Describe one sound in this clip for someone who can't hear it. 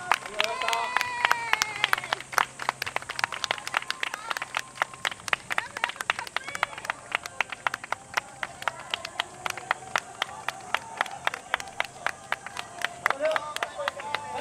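Wooden hand clappers clack rapidly in rhythm.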